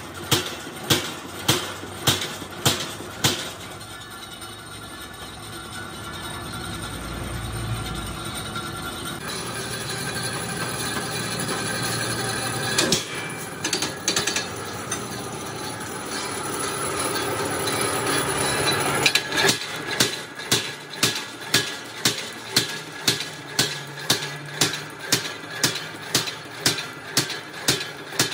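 A machine motor hums steadily.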